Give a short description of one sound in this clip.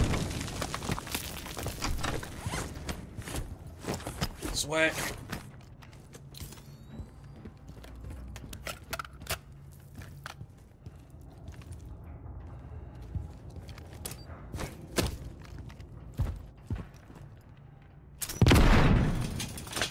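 Footsteps thud and scuff on a hard floor.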